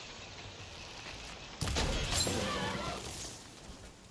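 A bowstring creaks as it is drawn.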